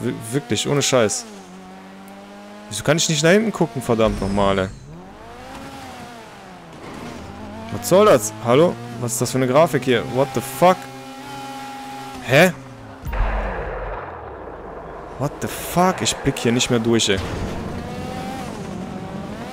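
A race car engine roars and revs up and down.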